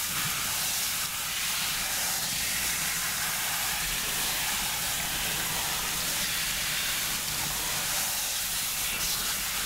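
Water sprays steadily from a shower head onto hair.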